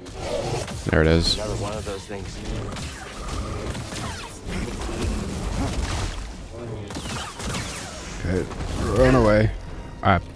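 Blades clash with sharp sparking hits.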